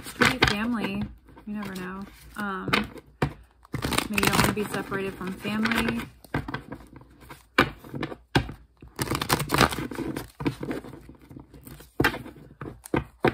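Playing cards tap and square up into a deck.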